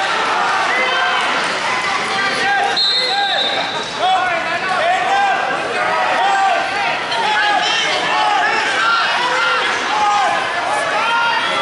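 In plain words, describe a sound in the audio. A crowd of spectators shouts and cheers, echoing in a large hall.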